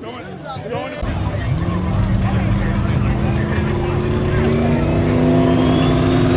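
Race car engines roar loudly and rise in pitch.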